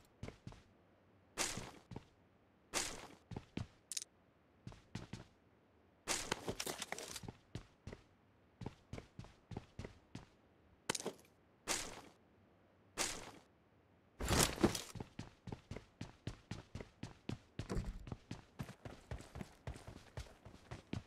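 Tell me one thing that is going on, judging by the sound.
Footsteps thud quickly on wooden floorboards.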